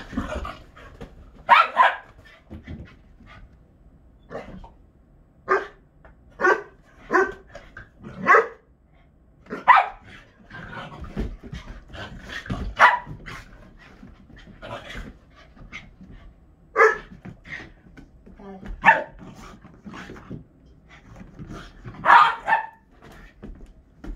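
Two dogs bark in short, playful bursts.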